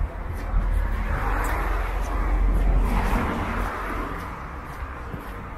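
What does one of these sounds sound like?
A car drives past on a wet road.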